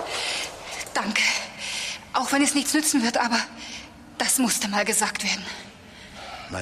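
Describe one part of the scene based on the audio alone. A young woman speaks urgently and close by.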